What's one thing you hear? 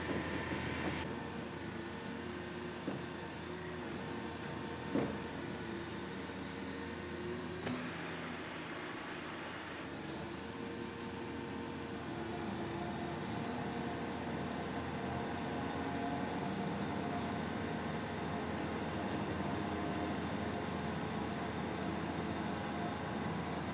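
A crane's diesel engine rumbles steadily.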